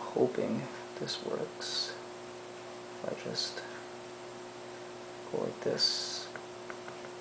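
A small plastic tool scrapes and clicks against plastic.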